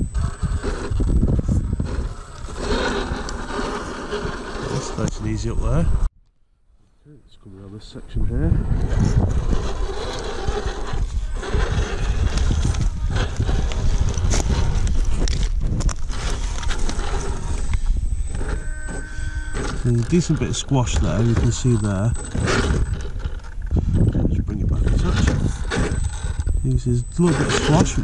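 Rubber tyres grind and scrape over loose rock.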